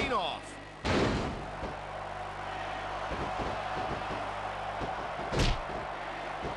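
Heavy thuds of bodies slamming onto a wrestling mat.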